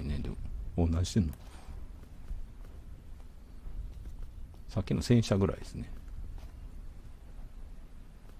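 Footsteps shuffle softly on wet paving stones.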